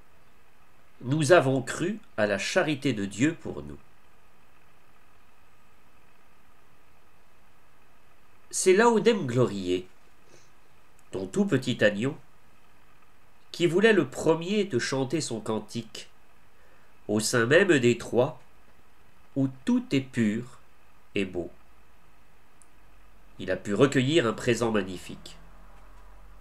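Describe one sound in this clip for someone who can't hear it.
A man speaks calmly in short phrases, close to a microphone, as if on an online call.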